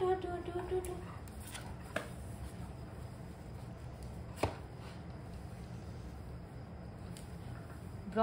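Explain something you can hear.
Fabric rustles as a dog scratches and paws at a cloth.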